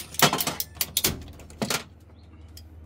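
Metal clatters and knocks as a panel is handled.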